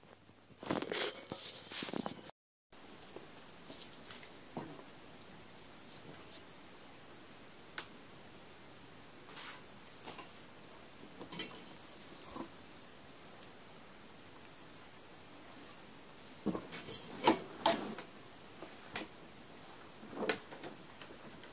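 A lampshade bumps and rustles close by.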